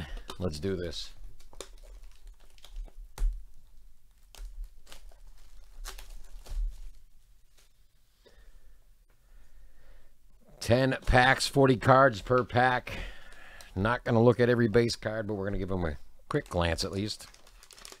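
A cardboard box scrapes and taps as it is handled.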